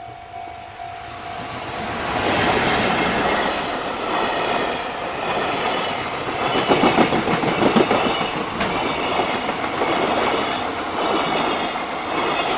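A freight train rumbles past close by, its wheels clattering loudly on the rails.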